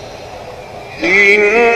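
A man chants loudly and melodically into a microphone in an old, hissy recording.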